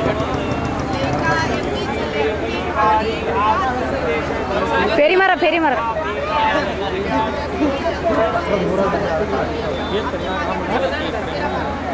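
A crowd of men and women talk and call out loudly nearby outdoors.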